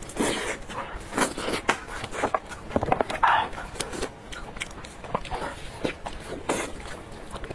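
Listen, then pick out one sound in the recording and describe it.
A young woman chews wet, sticky meat close to a microphone.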